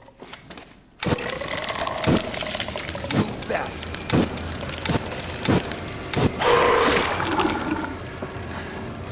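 A flamethrower roars loudly as it sprays fire.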